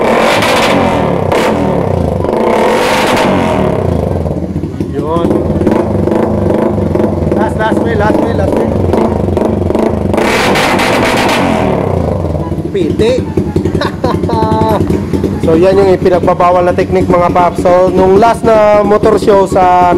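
A motorcycle engine revs hard in sharp, rising bursts.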